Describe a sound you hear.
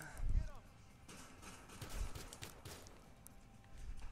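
Pistol shots ring out in quick succession.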